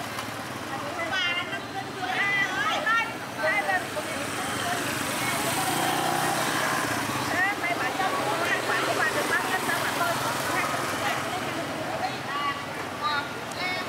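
A motorbike drives past.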